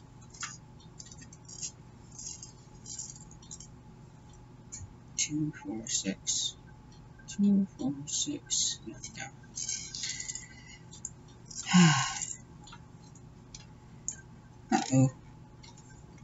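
Small metal pieces click and clink softly.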